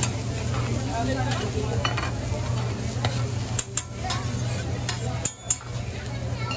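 A metal spatula scrapes and clinks against a hot griddle.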